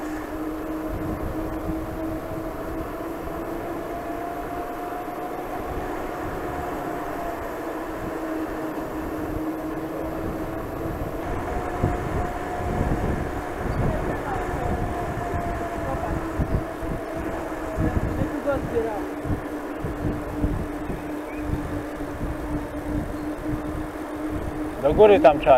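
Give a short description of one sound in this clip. Bicycle tyres hum on a paved path.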